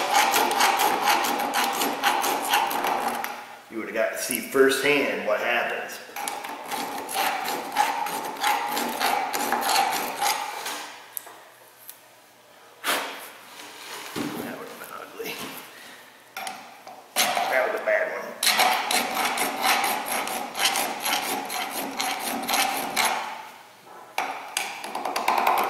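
A tool scrapes rapidly against metal, up close.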